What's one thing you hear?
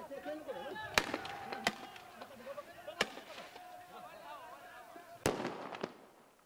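A rifle fires sharp, loud shots close by.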